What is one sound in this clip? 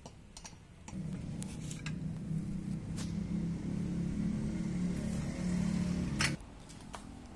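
A hydraulic jack creaks and groans as its handle is pumped.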